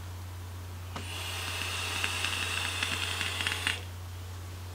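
A vape device crackles and hisses as a man inhales through it.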